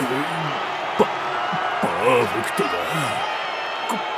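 A man gasps and pants heavily.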